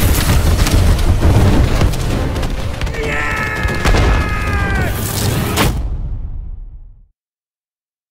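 A huge explosion booms and rumbles loudly, then fades.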